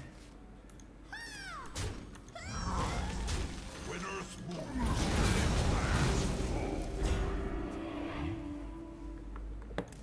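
Game effects whoosh and chime.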